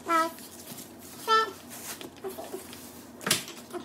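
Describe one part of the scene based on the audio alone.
Plastic wrapping rustles as it is pulled off.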